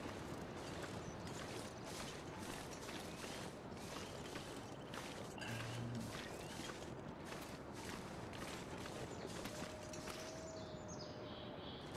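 Footsteps crunch through deep snow at a steady walking pace.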